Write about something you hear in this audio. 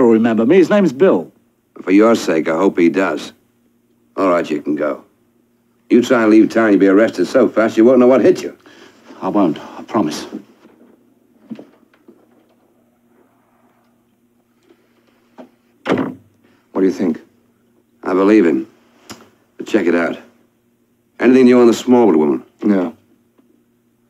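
A middle-aged man speaks in a coaxing, insistent voice close by.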